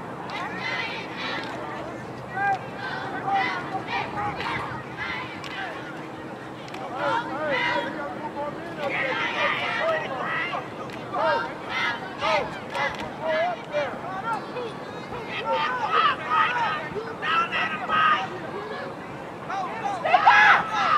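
A crowd of spectators shouts and cheers from nearby outdoors.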